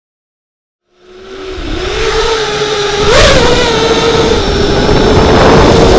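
A small drone's electric motors whine loudly, rising in pitch briefly as it climbs.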